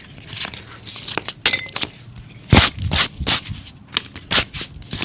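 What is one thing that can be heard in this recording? A hand rubs and brushes briskly over a shoe insole.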